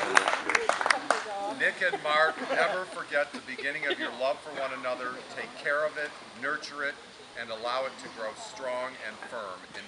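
An elderly man speaks calmly to a small gathering.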